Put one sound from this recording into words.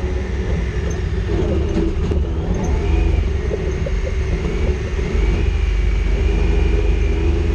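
Tyres crunch and bump over a dirt track.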